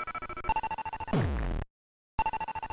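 An electronic tone sweeps quickly downward.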